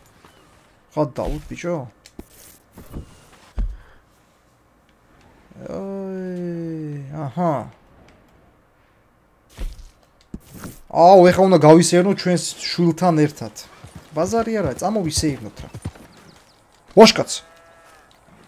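A man talks with animation close to a microphone.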